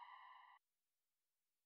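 A bright electronic victory chime rings briefly.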